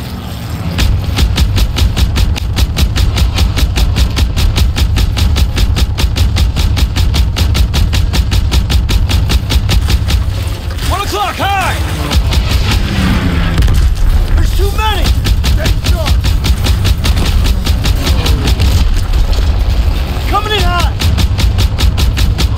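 An anti-aircraft gun fires in rapid, steady bursts.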